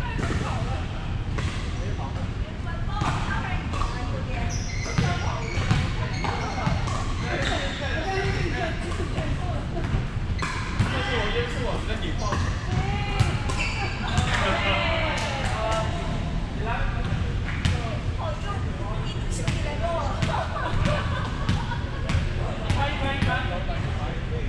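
Young men shout and call out to each other across a large echoing hall.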